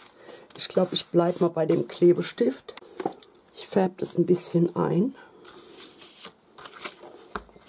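Paper rustles as it is moved about.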